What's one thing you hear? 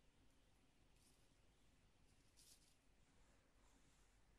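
A sheet of paper crinkles faintly as a small creature crawls onto it.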